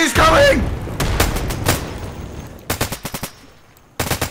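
Rifle shots crack in short, quick bursts.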